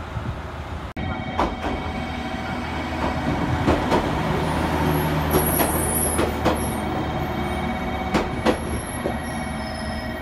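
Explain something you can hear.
A train rolls past with wheels clacking and squealing on the rails.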